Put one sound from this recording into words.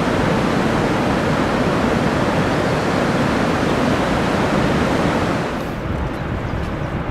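Rushing water roars steadily.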